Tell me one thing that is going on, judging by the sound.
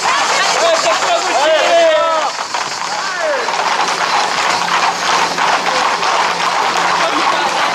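Horse hooves clatter on pavement.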